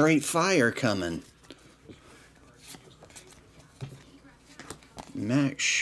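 Stiff trading cards riffle and flick softly against each other.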